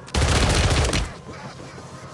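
Gunshots ring out in a quick burst.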